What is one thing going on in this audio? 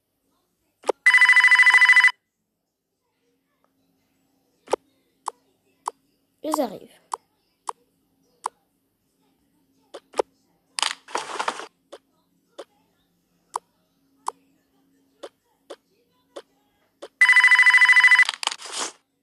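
A television sounds a short electronic tune as its channel changes.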